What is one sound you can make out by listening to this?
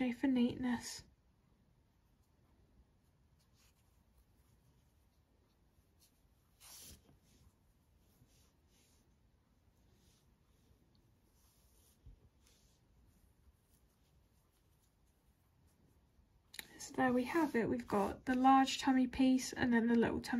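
A crochet hook softly pulls yarn through loops.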